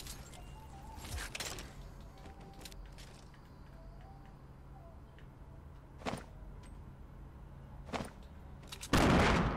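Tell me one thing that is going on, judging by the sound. Sharp game sound effects click and pop.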